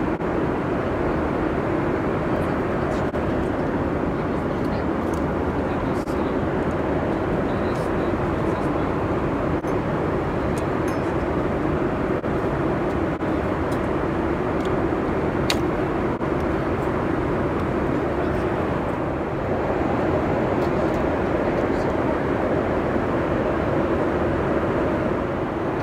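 A plane's cabin hums with a steady, low engine drone.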